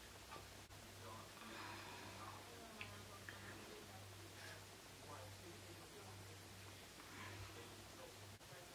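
A woman speaks quietly and calmly, close by.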